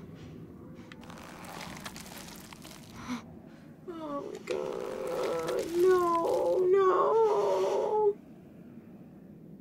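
Wet flesh squelches and tears.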